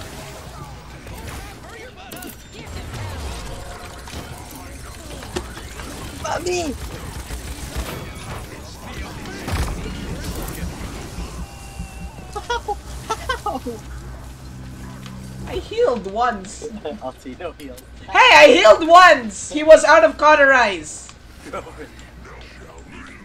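Magical attacks whoosh and crackle in a fast fight.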